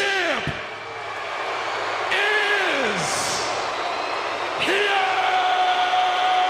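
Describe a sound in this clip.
A large crowd cheers and shouts in a big arena.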